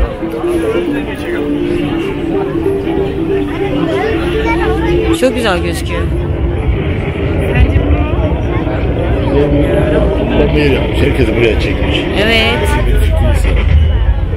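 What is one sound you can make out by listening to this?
Men and women chat and call out nearby in an open outdoor crowd.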